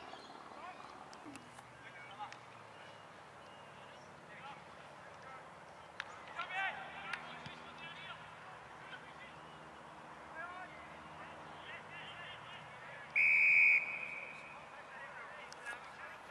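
Young men shout and call to each other across an open field, some way off.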